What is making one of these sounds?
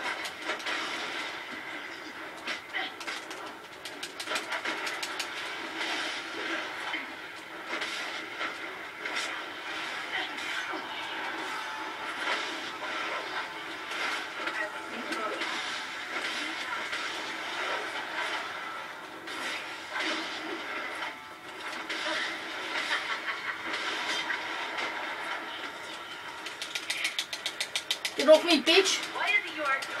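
A video game plays through a small speaker with battle sounds and clashes.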